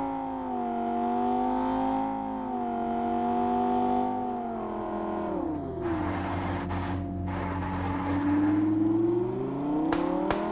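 A car engine hums and rises and falls in pitch as it drives.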